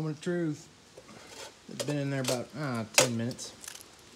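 A hand scrubs a wet metal tray.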